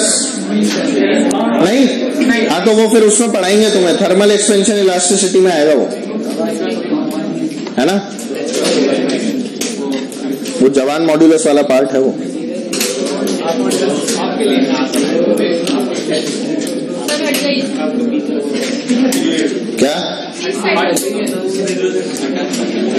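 A middle-aged man speaks with animation into a clip-on microphone.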